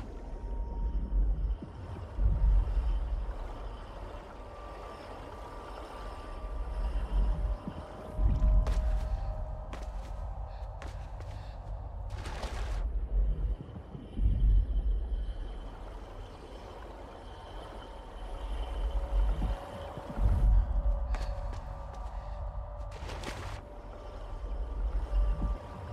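Deep underwater rumbling rises and falls in slow surges.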